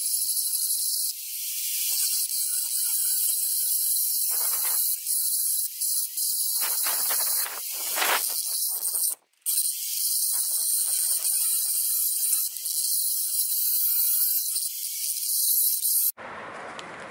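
An angle grinder whines loudly as it grinds metal.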